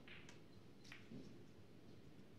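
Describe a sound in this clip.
A cue strikes a snooker ball with a soft click.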